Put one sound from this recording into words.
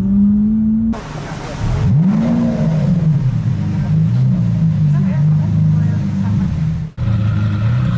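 A sports car engine revs sharply once and settles.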